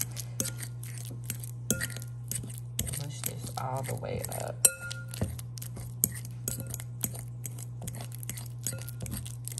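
A metal fork scrapes and clinks against a glass bowl, mashing soft food.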